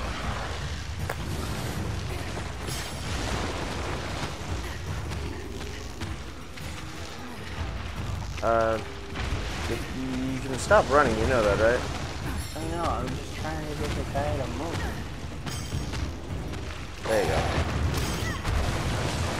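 Heavy bodies thud and scrape in a fight.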